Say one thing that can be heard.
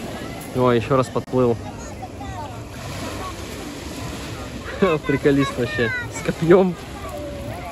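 A man talks excitedly close by outdoors.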